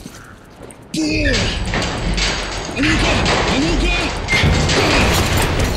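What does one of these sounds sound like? A metal grate rattles and creaks as it is pulled loose.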